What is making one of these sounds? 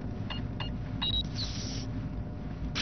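A keypad chimes to confirm an entry.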